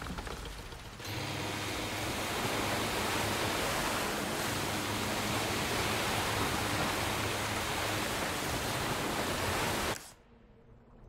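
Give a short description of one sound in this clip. A motorboat engine roars steadily as the boat speeds over water.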